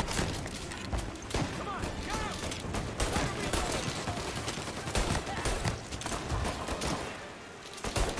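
Pistol shots fire in quick bursts.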